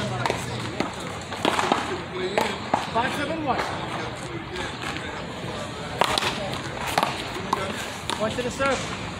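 A ball smacks sharply against a wall and paddles, echoing outdoors.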